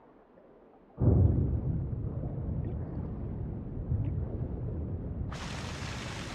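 Water rumbles deeply.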